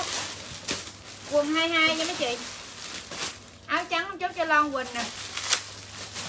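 Plastic bags rustle and crinkle in hands.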